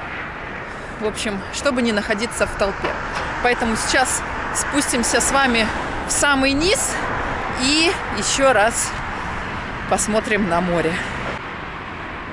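A woman talks with animation close to a microphone.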